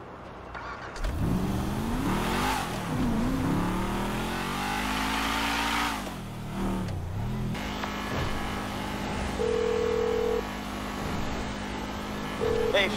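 A sports car engine starts and revs loudly, rising and falling in pitch.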